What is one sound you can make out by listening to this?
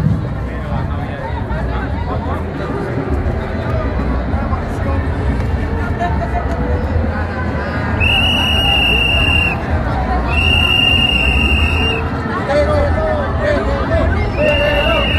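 A large crowd of men and women talks and cheers outdoors.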